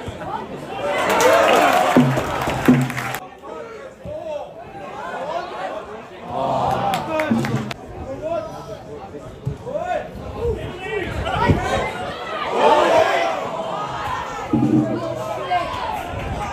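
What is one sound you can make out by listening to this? Men nearby shout loudly.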